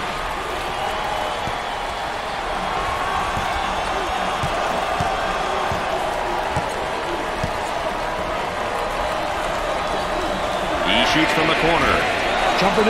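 A large crowd murmurs steadily in an echoing arena.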